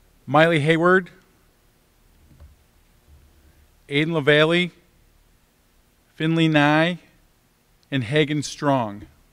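An older man reads out names one at a time through a microphone, with short pauses between them.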